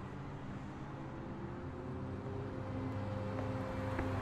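A bus engine hums as the bus pulls up.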